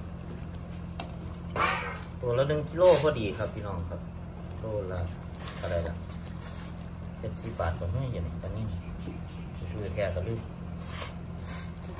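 Liquid sloshes in a pot as fish is turned.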